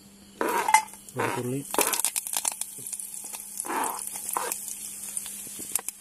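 A metal spoon scrapes food across a plastic cutting board into a pan.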